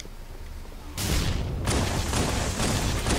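A plasma gun fires with loud bursts.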